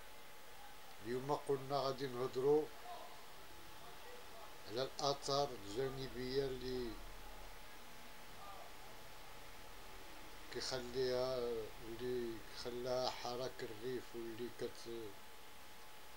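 A middle-aged man speaks calmly and close to the microphone, with pauses.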